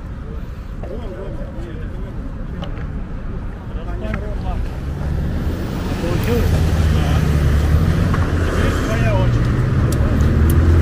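Skateboard wheels rumble over asphalt.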